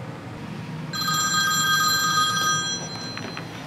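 A phone rings with a short electronic tune.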